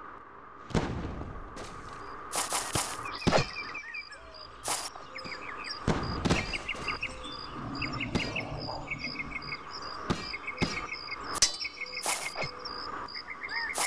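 Heavy armoured footsteps clank on stone.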